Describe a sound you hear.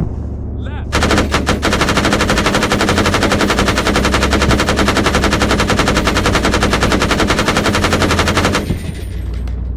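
Twin heavy guns fire in rapid, continuous bursts.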